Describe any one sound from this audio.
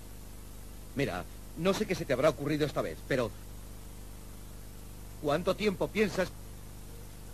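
A man speaks into a telephone in short, calm phrases.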